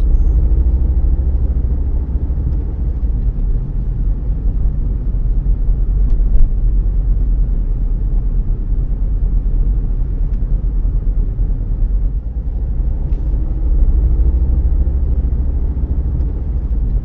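A car engine hums with a steady low rumble as tyres roll over the road.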